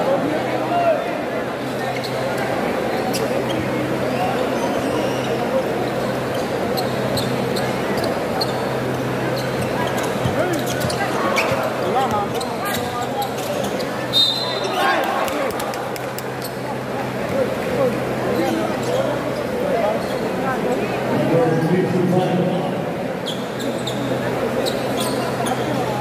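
A large crowd chatters and cheers steadily in an echoing indoor hall.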